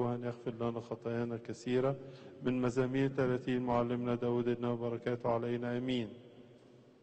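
Elderly men chant together through a microphone in a large echoing hall.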